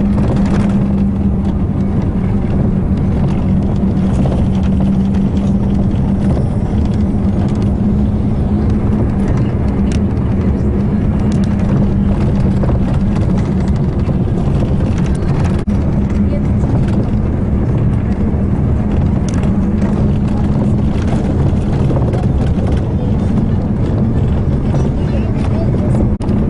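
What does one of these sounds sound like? A vehicle engine hums steadily from inside a moving car.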